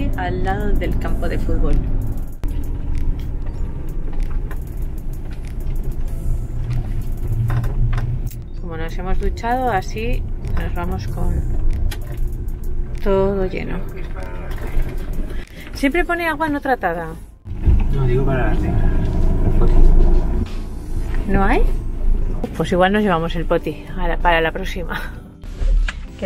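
A man talks nearby inside a vehicle.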